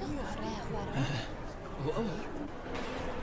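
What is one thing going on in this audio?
A group of young students chatter together.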